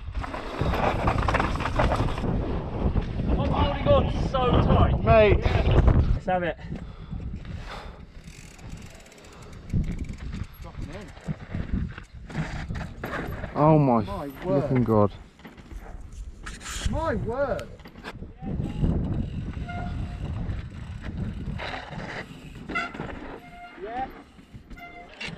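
Bike tyres crunch and rattle over rocky dirt.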